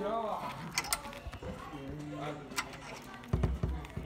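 A padlock rattles and clicks.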